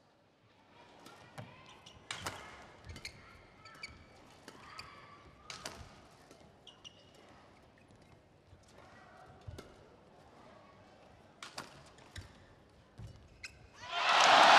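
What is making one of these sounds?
Shuttlecock hits ring out sharply from rackets, one after another, in a large echoing hall.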